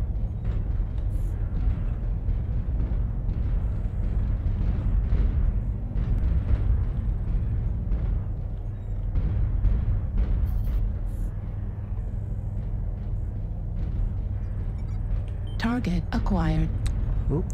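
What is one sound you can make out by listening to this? Heavy metal footsteps thud in a steady rhythm.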